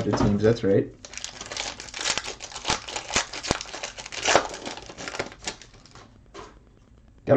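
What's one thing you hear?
A foil wrapper crinkles and tears as it is opened by hand.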